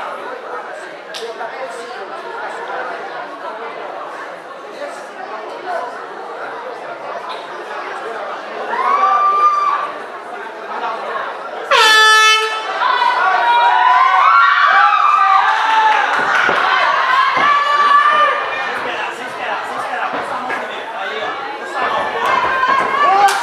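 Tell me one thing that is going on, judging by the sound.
A crowd murmurs and chatters in a large echoing room.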